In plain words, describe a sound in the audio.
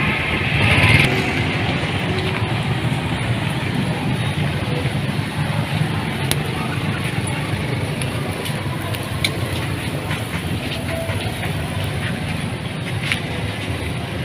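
Meat sizzles on a charcoal grill.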